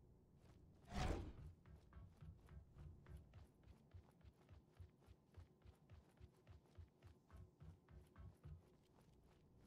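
Quick footsteps thud on a hard metal floor.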